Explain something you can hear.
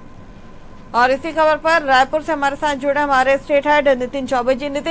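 A woman speaks calmly and clearly into a microphone, like a news presenter.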